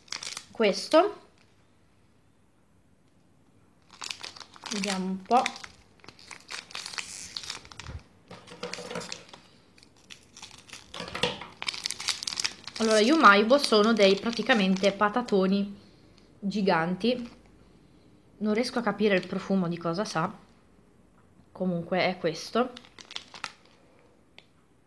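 A plastic candy wrapper crinkles as it is handled.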